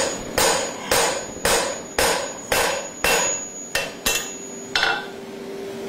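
A hammer strikes metal on an anvil in quick, ringing blows.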